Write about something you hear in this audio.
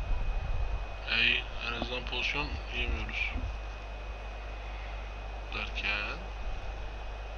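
A man speaks casually, close to a headset microphone.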